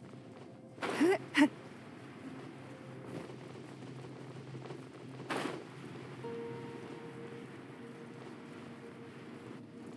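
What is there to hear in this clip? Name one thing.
A game character glides through the air with a soft whoosh.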